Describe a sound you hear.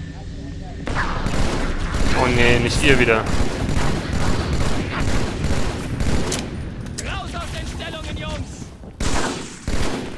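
Energy weapons crackle and zap.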